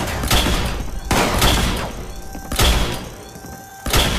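A gun fires a few loud shots.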